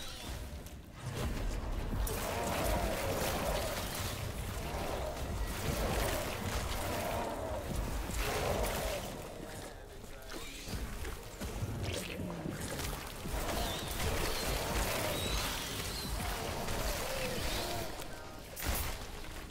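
Magic blasts crackle and boom during a fight with monsters.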